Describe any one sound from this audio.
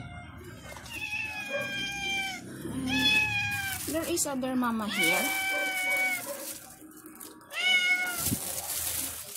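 A kitten mews loudly and repeatedly, close by.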